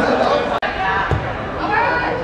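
A football is kicked hard with a dull thud.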